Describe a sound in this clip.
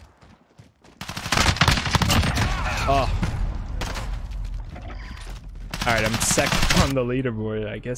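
Rapid gunfire crackles loudly.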